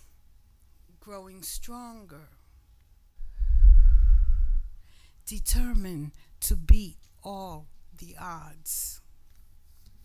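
An elderly woman speaks calmly into a microphone.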